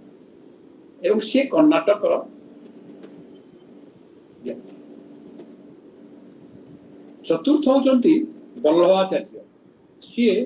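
An elderly man speaks calmly through an online call, in short bursts with pauses.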